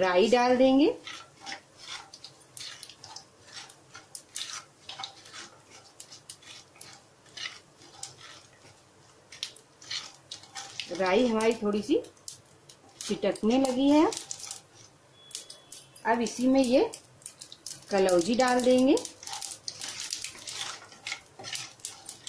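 A wooden spoon scrapes and stirs in a pan.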